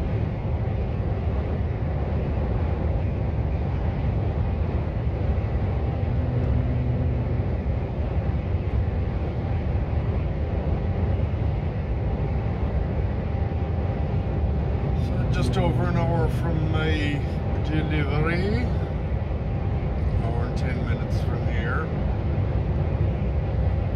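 Tyres rumble steadily on the road.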